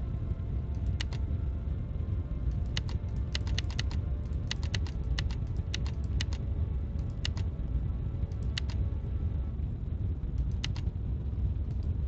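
Short electronic clicks sound as buttons are pressed.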